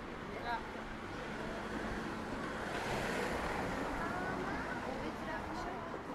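A van drives slowly past close by.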